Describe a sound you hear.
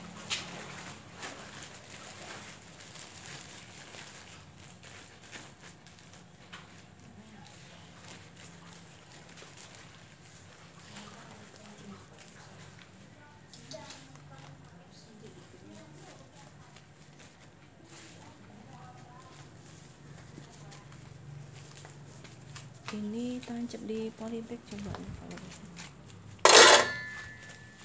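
Hands press loose potting soil into a plastic planting bag.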